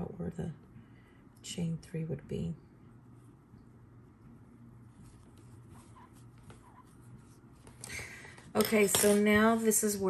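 A crochet hook softly scrapes and pulls through yarn.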